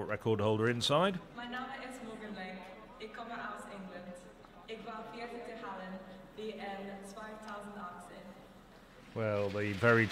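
A young woman speaks cheerfully close by.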